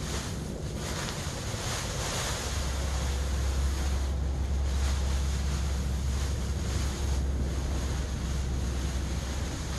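Dry husks pour and rustle onto the ground.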